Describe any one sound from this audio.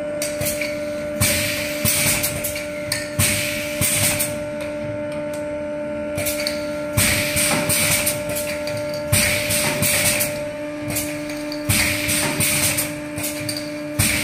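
A filling machine hums steadily.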